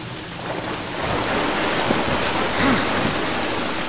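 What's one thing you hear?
Water splashes as a figure wades through it.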